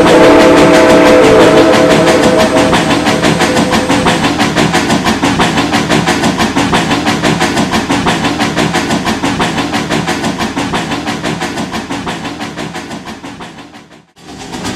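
Freight car wheels clack rhythmically over rail joints and fade into the distance.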